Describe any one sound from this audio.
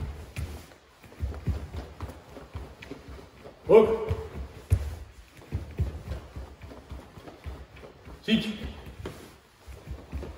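Bare feet thump softly on a floor.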